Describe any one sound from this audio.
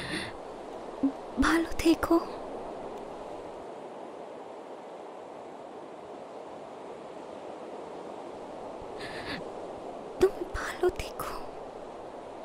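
A young woman speaks close by in a tearful, upset voice.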